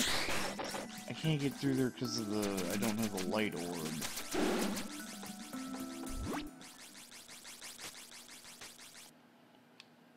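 Rapid electronic sound effects of magical shots and hits ring out.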